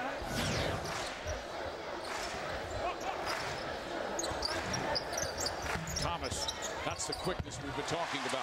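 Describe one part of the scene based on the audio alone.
A crowd cheers and murmurs steadily in a large echoing arena.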